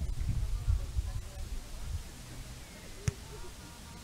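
A ball is kicked with a dull thump.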